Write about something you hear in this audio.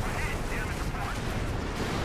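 A tank cannon fires with a loud blast.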